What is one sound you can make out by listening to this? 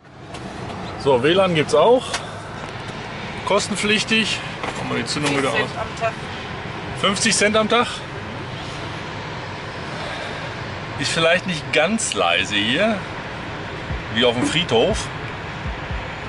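A middle-aged man talks calmly close to the microphone.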